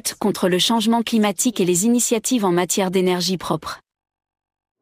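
A young woman speaks clearly and calmly into a microphone.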